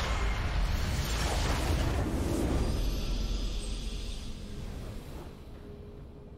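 A loud magical explosion booms and rumbles, then fades.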